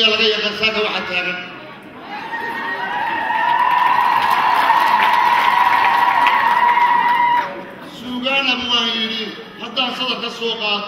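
A man speaks with animation into a microphone over a loudspeaker.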